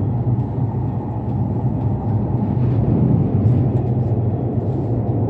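A train rumbles steadily at speed, heard from inside a carriage.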